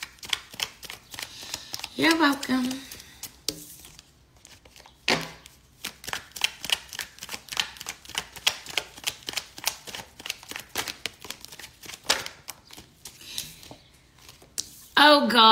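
Paper cards flick and riffle rapidly in a woman's hands.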